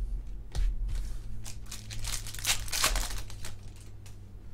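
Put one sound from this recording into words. A foil wrapper crinkles and tears as a pack is torn open.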